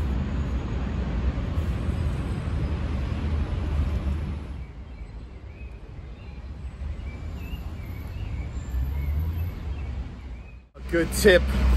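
Wind blows outdoors, rustling leaves.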